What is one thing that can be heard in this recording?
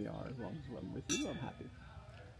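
Wine glasses clink together.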